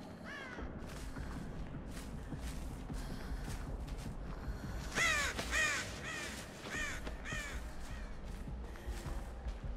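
Footsteps crunch over grass and leaves.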